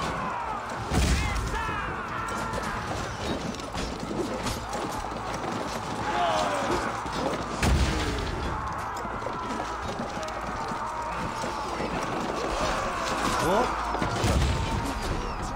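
A battering ram thuds heavily against a wooden gate.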